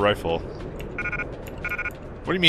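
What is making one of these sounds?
A short electronic beep sounds twice.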